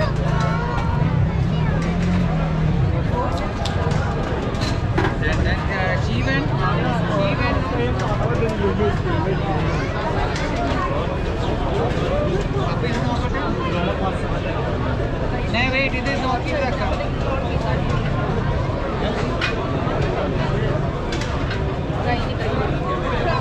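A busy street crowd chatters all around.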